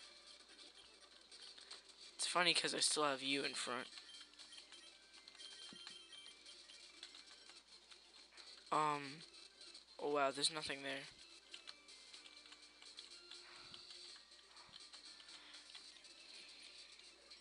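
Soft chiptune game music plays steadily.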